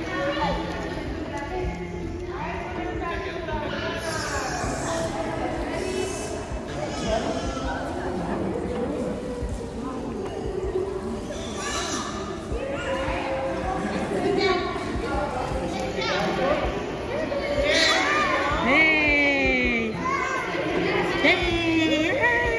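A young woman speaks cheerfully to a baby up close.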